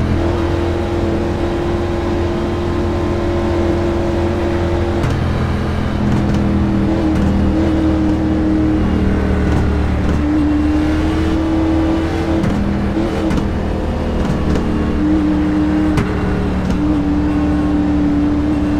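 A race car engine drones loudly at steady speed, its pitch shifting with gear changes.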